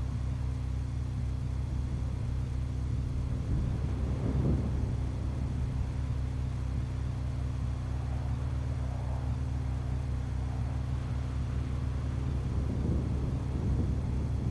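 Wind roars steadily during a high fall.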